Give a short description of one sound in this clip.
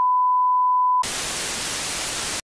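Loud static hisses steadily.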